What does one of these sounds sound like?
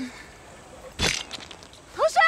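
A blade stabs into flesh with a sharp thud.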